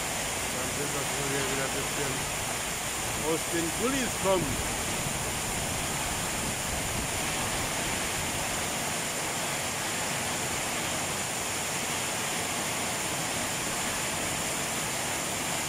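Heavy rain pours down steadily, splashing on the road outdoors.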